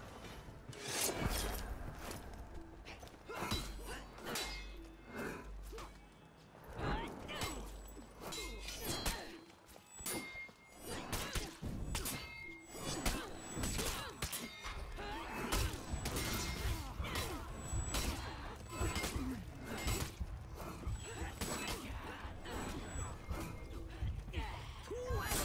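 Metal blades clash and strike repeatedly.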